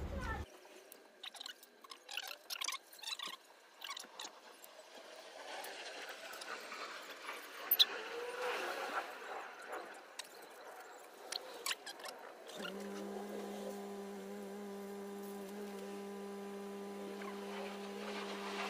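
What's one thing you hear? Small scissors snip at pine needles.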